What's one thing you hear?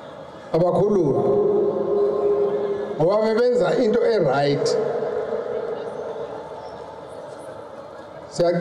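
An elderly man speaks forcefully through a microphone and loudspeakers, his voice echoing outdoors.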